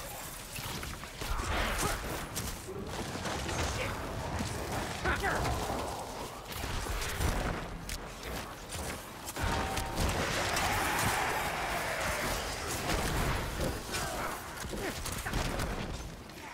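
Game combat sounds of hits and spells clash and burst.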